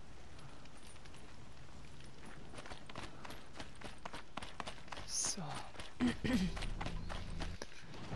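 Footsteps patter quickly over grass and stone.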